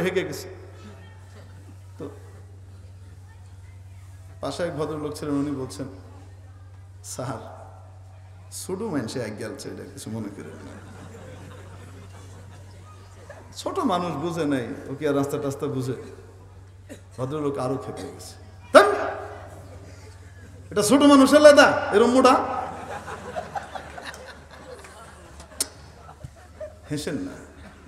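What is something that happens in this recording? A man speaks through a microphone in bursts with pauses, in a calm preaching voice.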